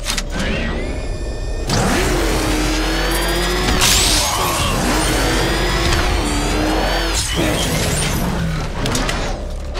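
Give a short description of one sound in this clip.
A powerful car engine roars and revs up and down.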